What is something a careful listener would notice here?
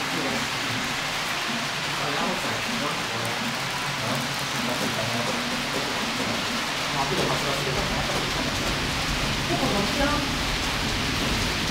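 A small model train whirs and clatters along its track.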